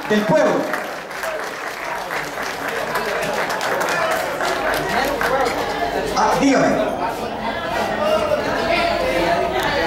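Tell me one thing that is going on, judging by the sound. A crowd of men chatters and murmurs nearby.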